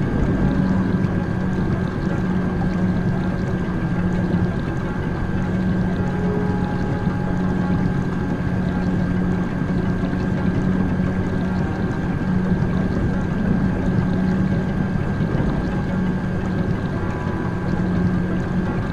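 A submarine's engine hums steadily underwater.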